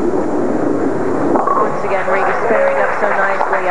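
Bowling pins crash and clatter as the ball strikes them.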